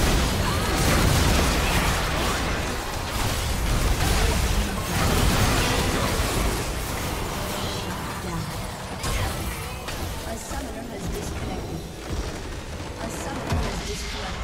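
Game spell effects crackle and blast rapidly in a busy fight.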